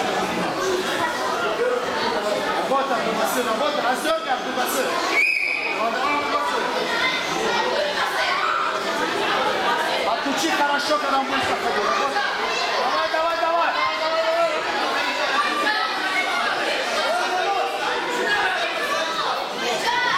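A crowd of children chatter and shout in an echoing hall.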